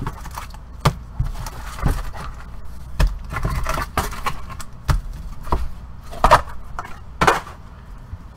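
Card packs knock and slide against one another.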